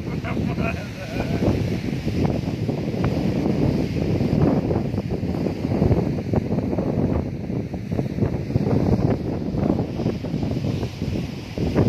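Sea waves wash against rocks.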